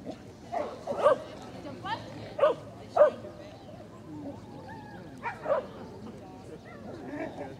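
A woman shouts short commands outdoors.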